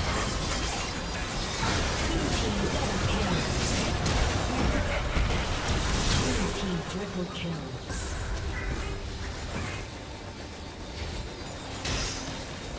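Spell blasts and explosions crackle and boom in a game battle.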